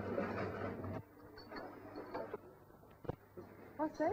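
A cash register clicks and rattles.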